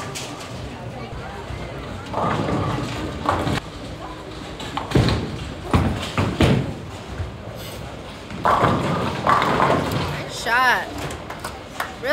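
Bowling balls rumble down lanes in a large echoing hall.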